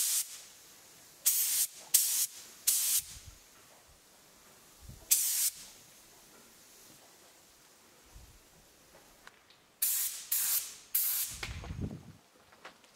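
A spray gun hisses in short, sharp bursts.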